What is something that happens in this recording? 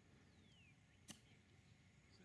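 A golf club chips a ball off grass.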